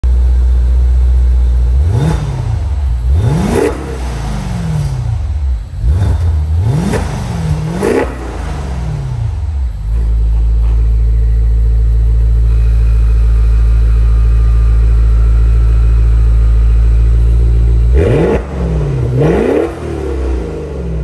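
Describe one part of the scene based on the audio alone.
A car engine idles with a deep, steady rumble through its exhaust.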